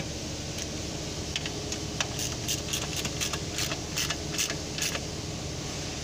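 A ratchet wrench clicks rapidly as a bolt is turned.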